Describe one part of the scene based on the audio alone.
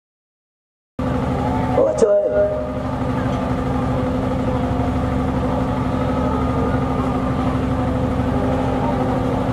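A woman speaks through loudspeakers.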